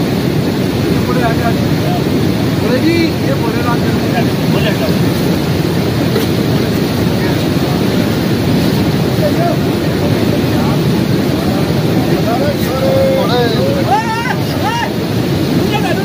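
Men chant and call out in a crowd outdoors.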